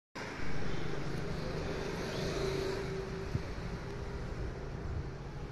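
An elderly woman speaks close to a microphone.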